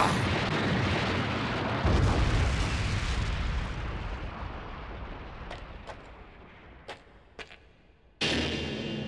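A heavy explosion booms and rumbles, then slowly fades.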